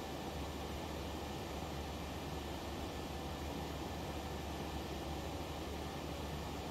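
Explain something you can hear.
Jet engines drone with a steady low roar.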